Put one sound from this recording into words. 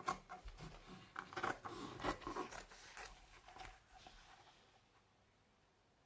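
Scissors snip through felt.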